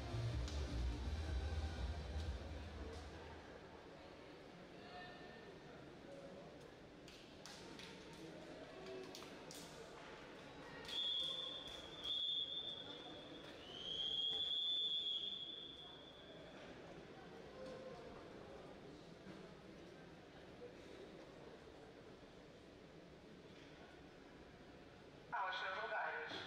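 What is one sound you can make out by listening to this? People chatter in a large echoing hall.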